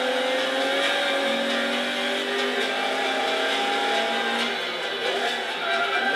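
A car engine revs high and steady while drifting.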